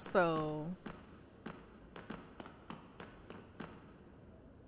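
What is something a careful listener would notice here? Footsteps tap steadily on hard stone.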